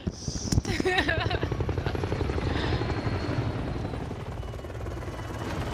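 A helicopter's rotor thumps steadily nearby.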